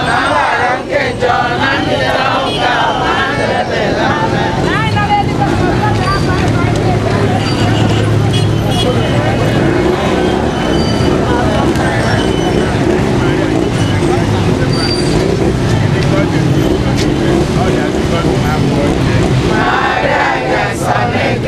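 A large crowd of women chants and sings together outdoors.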